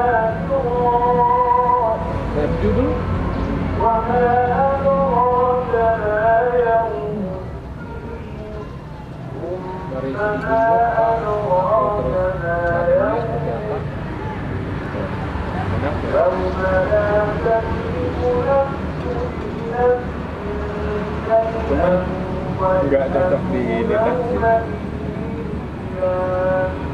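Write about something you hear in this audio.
Young men talk casually at close range.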